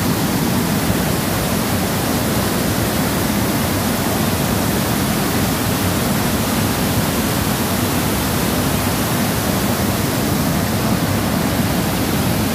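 A waterfall roars steadily, with water rushing and splashing over rocks.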